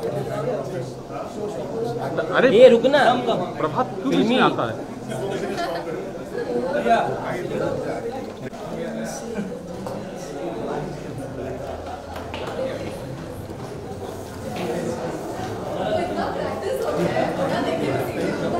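A crowd of people chatters and murmurs all around.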